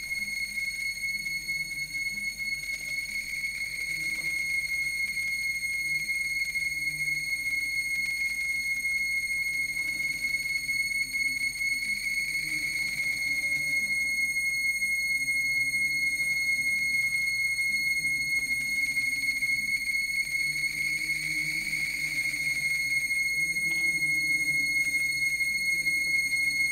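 A low electronic drone rumbles and wavers through a loudspeaker.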